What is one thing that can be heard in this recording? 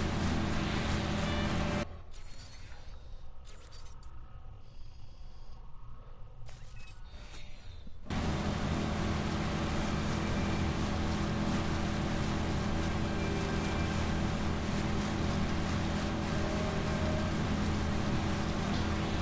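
A motorboat engine drones steadily.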